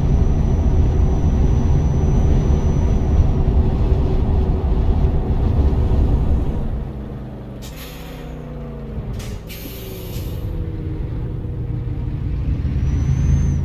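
A truck engine rumbles steadily with a low drone.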